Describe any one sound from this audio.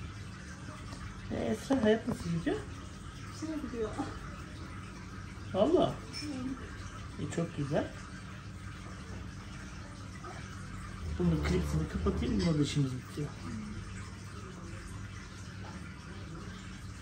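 A young woman talks briefly close by.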